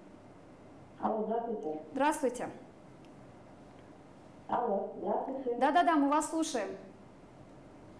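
A young woman speaks brightly and clearly into a microphone.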